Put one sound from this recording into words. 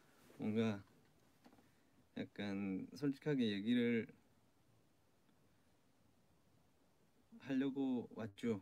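A young man speaks calmly and softly into a nearby microphone, pausing between phrases.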